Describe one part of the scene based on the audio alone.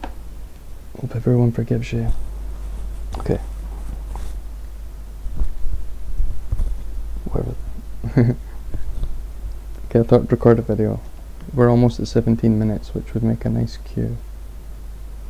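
A young man talks calmly and close by, in short bursts.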